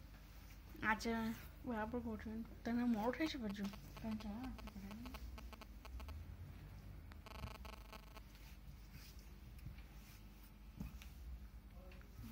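Cloth rustles softly as hands handle fabric.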